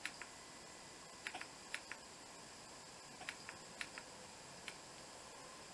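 Small plastic parts click sharply as they are handled up close.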